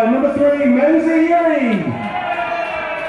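A group of young men shouts together loudly outdoors.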